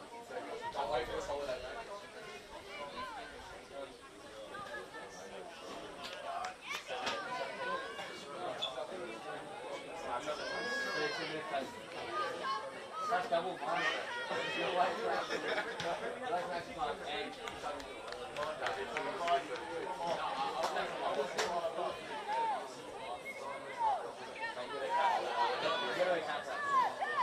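Women players shout and call to each other across an open field.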